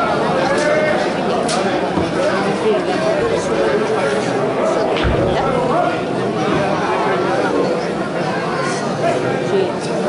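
A young man shouts to call a bull.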